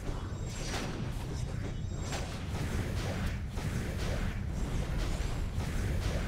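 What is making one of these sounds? Magic spells burst and whoosh in quick blasts.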